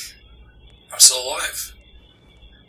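A man groans weakly nearby.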